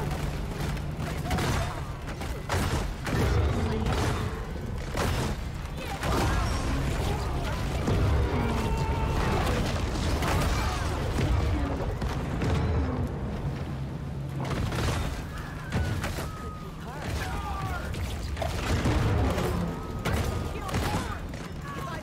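Explosions boom again and again.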